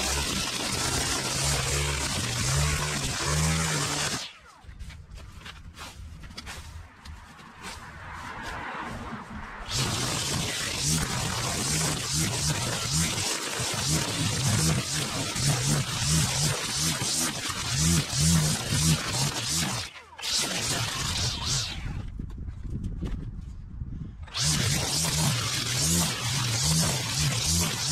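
A petrol string trimmer buzzes loudly, revving up and down as it cuts grass, with short pauses.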